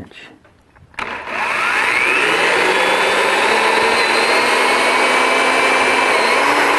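A power drill whirs steadily as it bores into a board.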